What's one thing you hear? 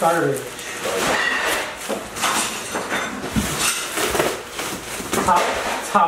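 A cardboard box rustles and scrapes as it is handled.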